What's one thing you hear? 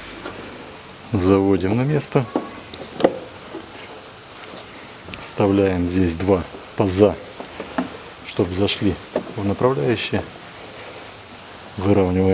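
A plastic cover rattles and clicks as hands fit it into place.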